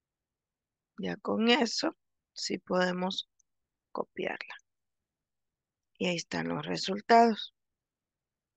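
A young woman speaks calmly over an online call.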